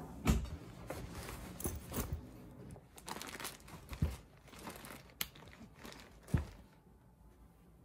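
A canvas tote bag rustles and thumps as it is handled.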